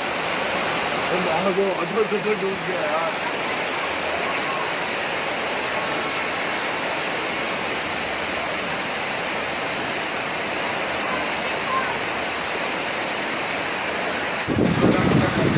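Floodwater rushes and churns.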